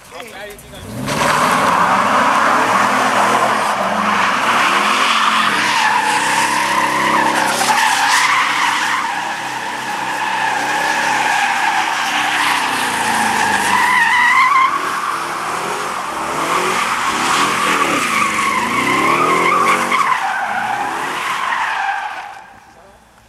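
Car tyres screech and squeal loudly on pavement.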